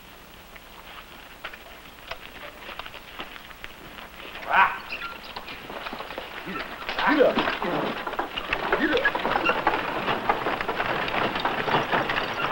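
Footsteps scuff on a dirt street.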